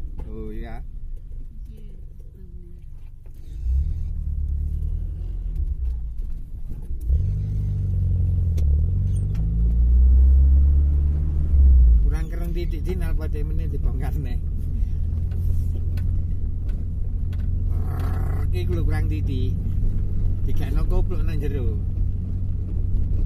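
A vehicle's engine rumbles low and steady from inside the cab.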